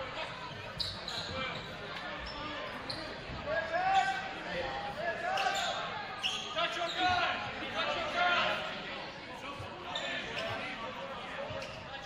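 Sneakers squeak sharply.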